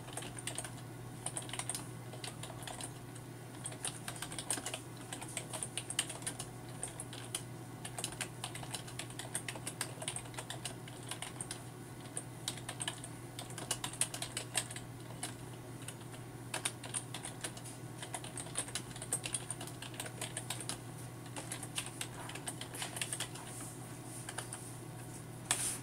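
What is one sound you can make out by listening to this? Keys on a keyboard click rapidly in irregular bursts.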